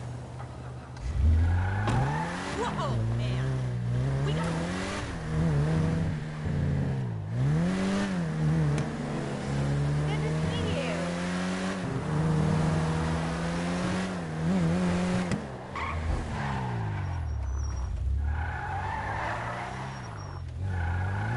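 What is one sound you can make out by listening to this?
A car engine revs and roars, rising and falling in pitch as it speeds along.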